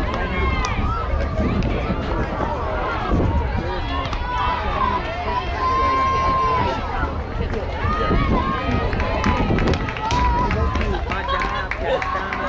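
Young girls shout and cheer from a distance outdoors.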